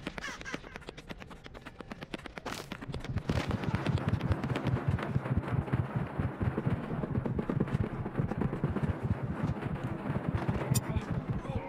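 Footsteps run quickly over a hard floor.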